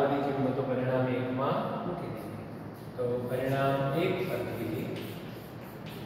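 An older man speaks calmly, as if explaining.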